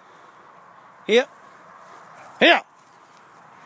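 A dog barks close by.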